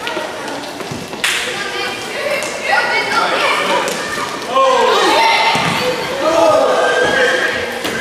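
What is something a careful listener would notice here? Spectators cheer and shout from the side.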